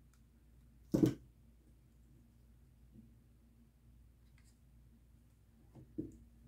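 A plastic cup knocks softly against a hard surface.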